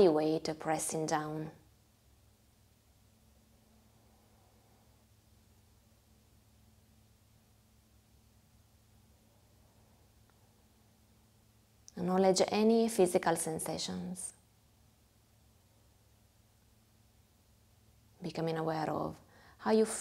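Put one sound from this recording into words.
A young woman sings slowly in a calm voice, close to a microphone.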